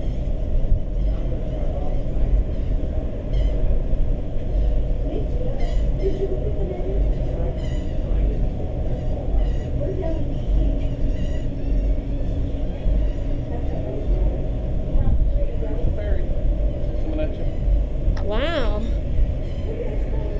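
Water rushes and splashes along a ship's hull below.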